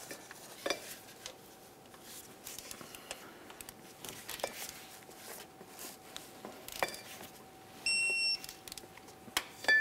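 A ratchet torque wrench clicks as it turns a bolt.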